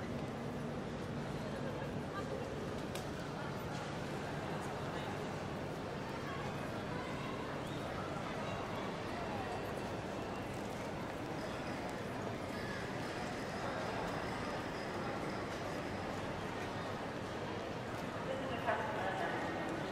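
Footsteps echo in a large echoing hall.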